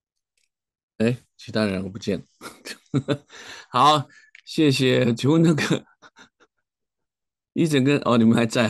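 A middle-aged man speaks cheerfully over an online call.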